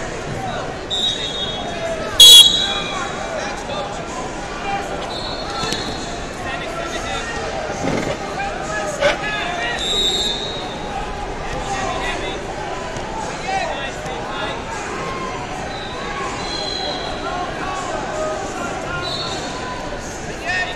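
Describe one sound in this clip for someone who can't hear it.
Referees blow sharp whistles now and then.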